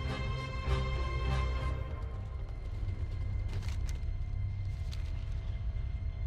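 Footsteps patter on dry ground.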